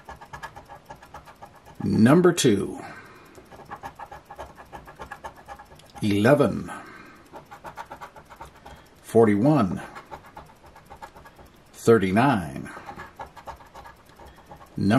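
A coin scratches rapidly across a card.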